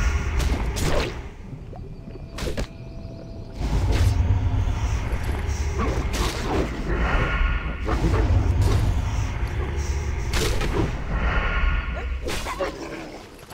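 Weapon strikes and thuds clash in a fast fight.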